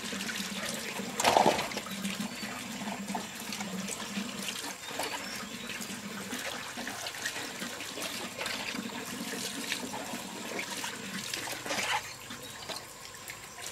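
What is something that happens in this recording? Vegetables knock against each other as they are set down.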